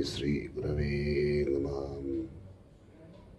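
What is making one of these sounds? A man chants a long, steady note close by.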